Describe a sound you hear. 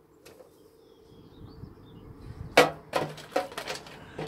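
A plastic container rattles and clatters.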